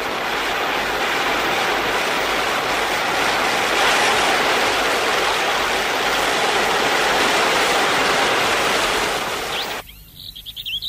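Heavy rain pours down steadily.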